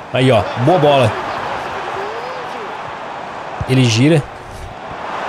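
A young man exclaims loudly into a microphone.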